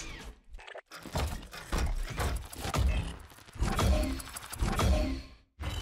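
Soft whooshing effects sound as cards flip over.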